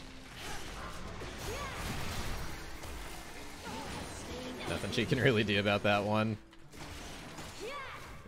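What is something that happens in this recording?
Video game spells crackle and whoosh during a fight.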